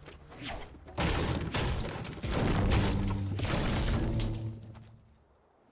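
A pickaxe strikes wood with heavy crunching blows.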